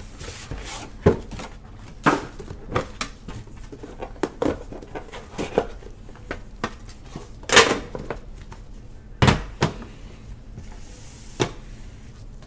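Metal tins knock and clack as they are opened and stacked.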